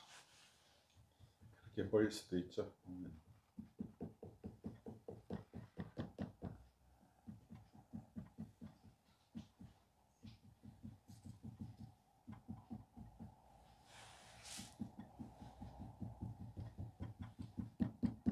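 A tool scrapes clay in quick, repeated strokes.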